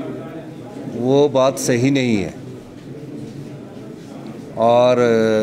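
A middle-aged man speaks calmly into a cluster of microphones.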